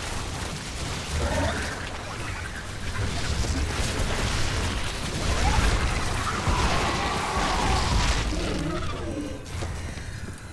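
Game units fire and explode in a battle.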